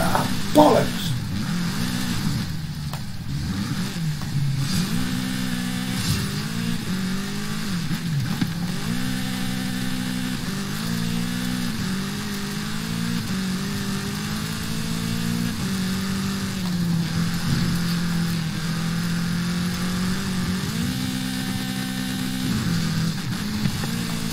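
A buggy engine revs loudly, rising and falling in pitch as it shifts gears.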